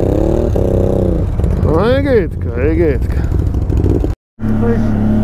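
An off-road quad bike engine idles nearby.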